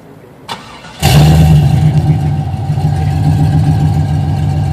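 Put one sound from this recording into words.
A car engine cranks and roars back to life.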